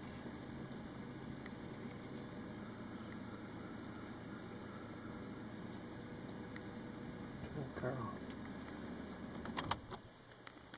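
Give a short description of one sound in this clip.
A fawn suckles noisily from a doe.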